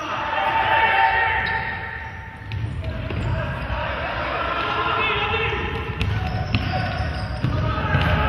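A ball thumps as players kick it, echoing in a large hall.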